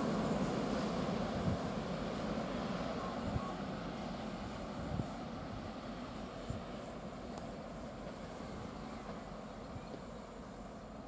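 A train rumbles far off and slowly fades away.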